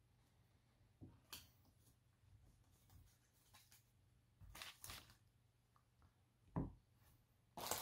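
Playing cards shuffle and slide against each other.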